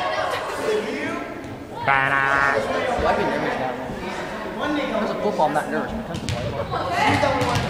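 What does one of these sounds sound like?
Children shout and chatter in a large echoing gym.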